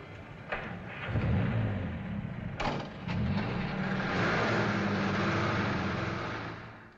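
A car engine starts and rumbles as the car pulls away.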